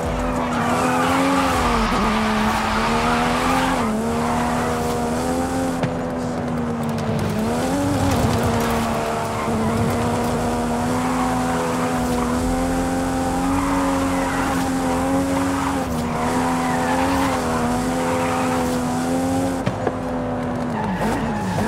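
Tyres screech as a car drifts on the road.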